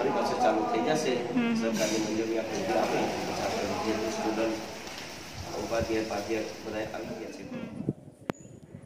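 An elderly man talks calmly, close by.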